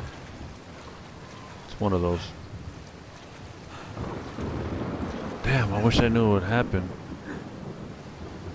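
Heavy rain pours down.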